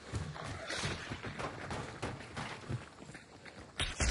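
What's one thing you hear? Footsteps clatter up metal stairs.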